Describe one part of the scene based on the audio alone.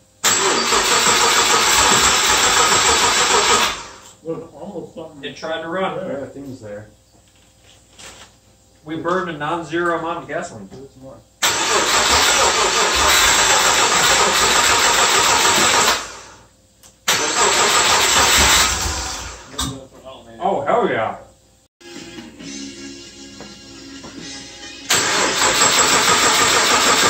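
A car engine roars loudly in bursts.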